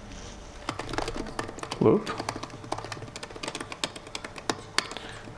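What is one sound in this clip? Keys clack quickly on a keyboard.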